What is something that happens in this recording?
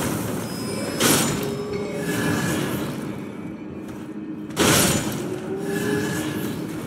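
A blade slashes and strikes an enemy.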